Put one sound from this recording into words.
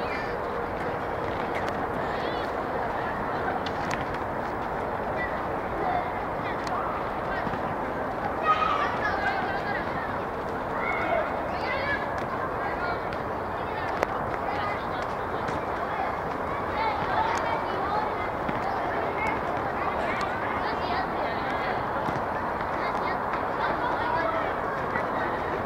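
Children shout and call out across an open outdoor field.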